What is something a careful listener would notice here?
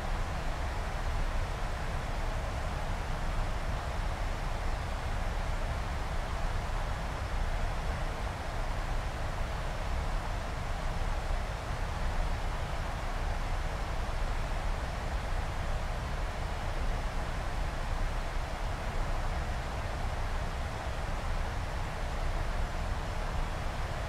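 A jet airliner's engines roar steadily inside a cockpit.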